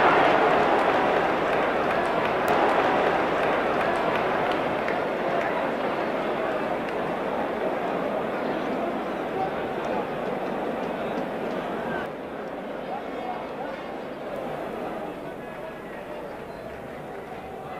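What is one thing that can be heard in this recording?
A large stadium crowd roars and cheers, then slowly quiets down.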